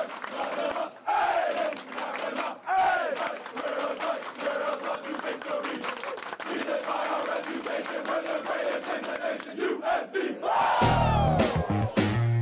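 A young man shouts out a lead call to the crowd.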